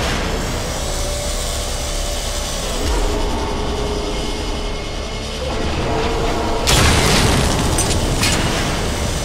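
A small flying craft's engine hums steadily.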